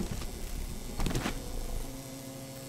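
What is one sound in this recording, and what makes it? A wooden crate creaks open.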